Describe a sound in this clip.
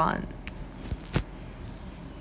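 Hands tap and handle the stiff pages of a board book.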